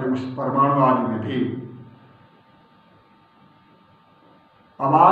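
An elderly man speaks calmly into a microphone, with pauses.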